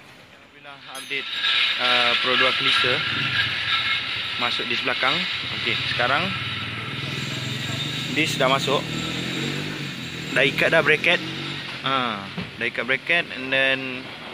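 A man talks close by, explaining with animation.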